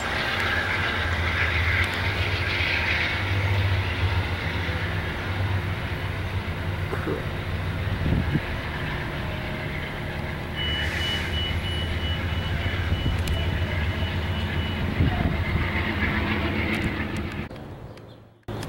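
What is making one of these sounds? A train rumbles away along the tracks, slowly fading.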